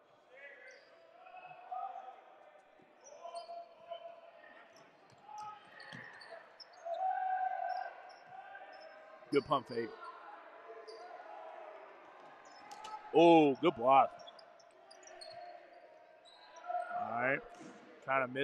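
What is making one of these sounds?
A crowd of spectators chatters in an echoing gym.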